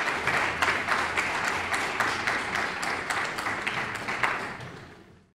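An audience applauds in a large hall, then the clapping fades.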